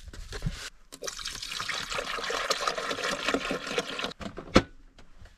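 Water pours from a plastic jug and gurgles.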